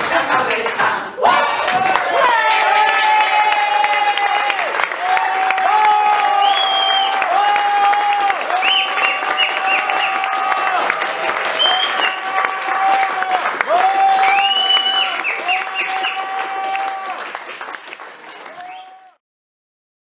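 A concertina plays along with the singing.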